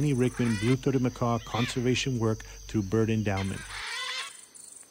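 Macaws screech loudly and harshly.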